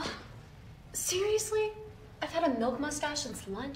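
A young woman speaks with disbelief, close by.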